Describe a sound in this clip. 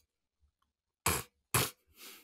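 A man speaks into a microphone in short bursts.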